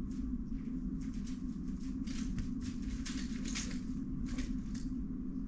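A puzzle cube's plastic layers click and clatter as they are turned quickly.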